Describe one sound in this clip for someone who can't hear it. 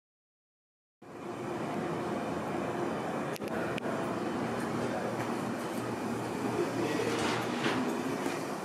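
An elevator hums steadily.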